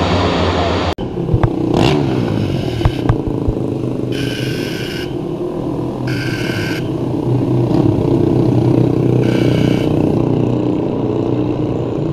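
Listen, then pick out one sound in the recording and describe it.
Racing motorcycles ride past in the distance.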